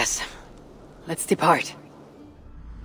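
A woman speaks calmly and briefly, close by.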